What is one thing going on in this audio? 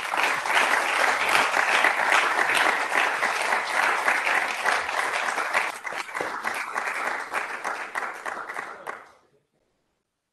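An audience applauds loudly in a large hall, then falls silent.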